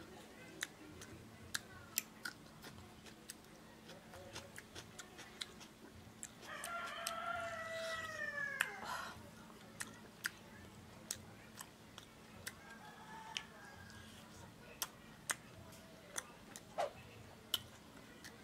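A man chews food and smacks his lips close up.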